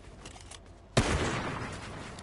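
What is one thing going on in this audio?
A gunshot cracks loudly.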